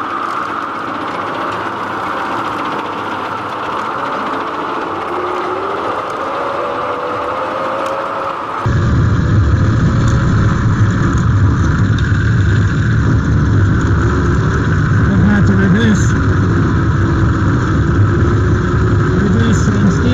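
A rotary mower deck whirs as it cuts grass.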